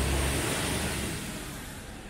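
A scooter buzzes past close by.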